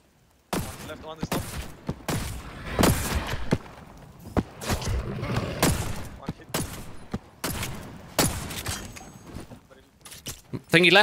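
A rifle fires single shots in quick bursts.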